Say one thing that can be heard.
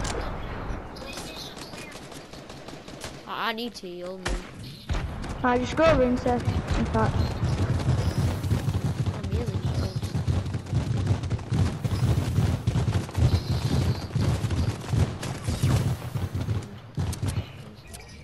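Footsteps crunch over grass as a game character runs.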